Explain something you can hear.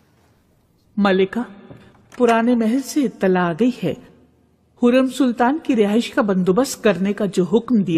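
A middle-aged woman speaks nearby, in a calm, respectful tone.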